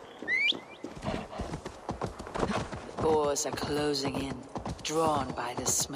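Hooves thud over frozen ground.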